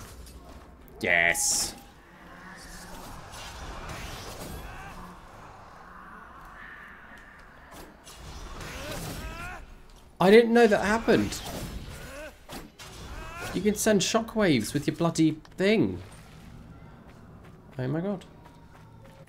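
Game sound effects whoosh and clash in combat.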